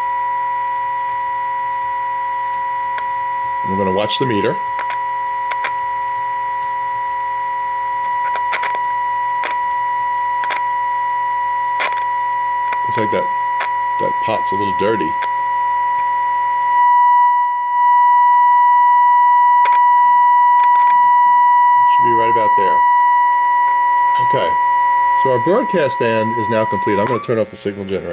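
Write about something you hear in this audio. A steady, high-pitched test tone plays through a loudspeaker.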